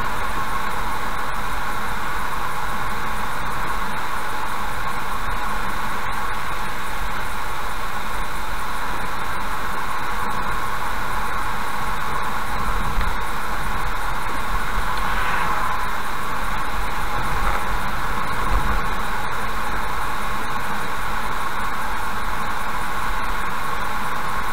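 A car drives along a wet road with a steady hum of tyres and engine.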